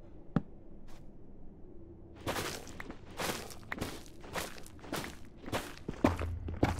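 Blocks crack and crunch in quick bursts as they are broken.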